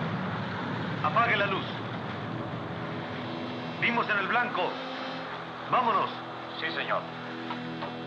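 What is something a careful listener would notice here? A man speaks calmly into a phone handset.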